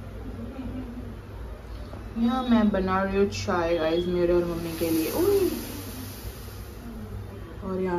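Tea bubbles and simmers in a pot.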